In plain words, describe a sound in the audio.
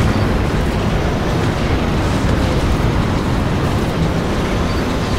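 Fires crackle and roar steadily with a deep rumble.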